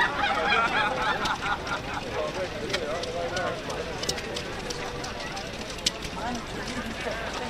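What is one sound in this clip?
Several adults chat casually nearby outdoors.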